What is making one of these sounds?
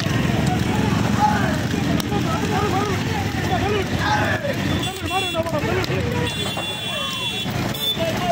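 Young men shout and whoop excitedly nearby.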